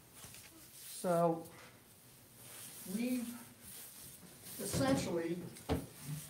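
Paper rustles as a man handles a large poster board.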